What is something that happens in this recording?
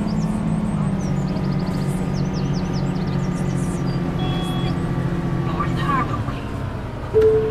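A bus engine hums steadily and winds down as the bus slows.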